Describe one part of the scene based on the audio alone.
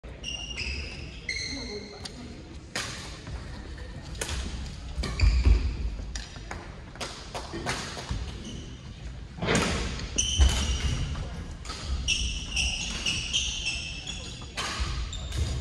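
Shoes squeak sharply on a wooden court.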